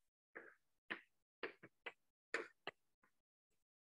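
Chalk taps and scratches on a board.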